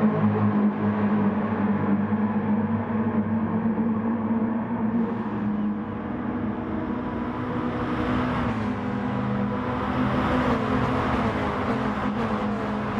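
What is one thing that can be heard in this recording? Racing car engines roar at high revs.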